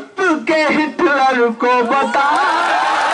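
A young man shouts slogans through a microphone.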